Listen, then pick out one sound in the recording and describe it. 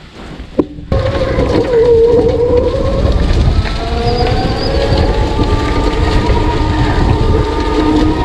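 Tyres roll and crunch over a rough dirt road.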